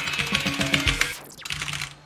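Buttons on a game controller click rapidly under fingers.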